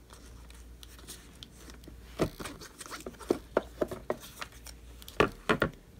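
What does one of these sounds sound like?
Plastic parts click and clatter as they are fitted together by hand.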